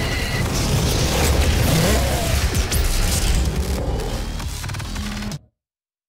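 Explosions burst loudly.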